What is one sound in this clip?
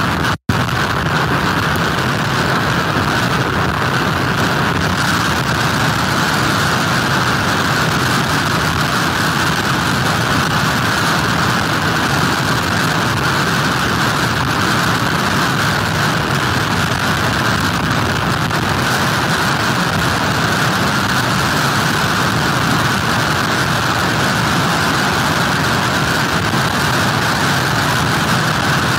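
Heavy surf crashes and churns against the shore.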